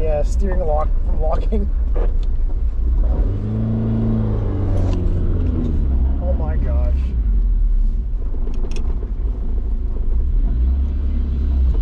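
A car engine rumbles steadily from inside the vehicle while driving.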